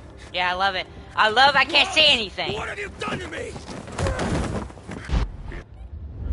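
A man shouts in panic.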